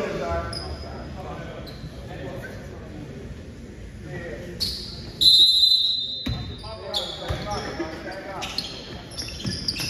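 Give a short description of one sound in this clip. A basketball bounces on the hardwood.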